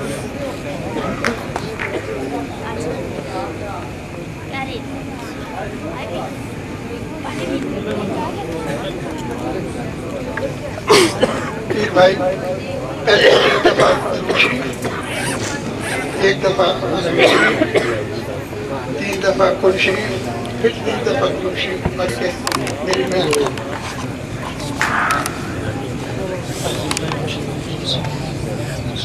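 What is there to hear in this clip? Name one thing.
A crowd of men murmurs and chatters in a large room.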